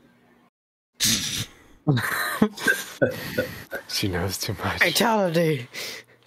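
Another man talks and laughs over an online call.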